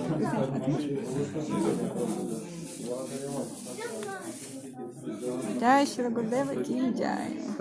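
Several men and women talk and chatter close by.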